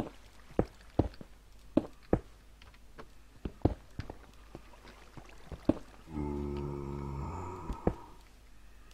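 Footsteps crunch on dirt and gravel at a steady walking pace.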